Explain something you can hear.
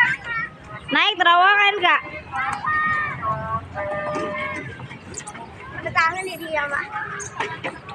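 Young children chatter and call out nearby, outdoors.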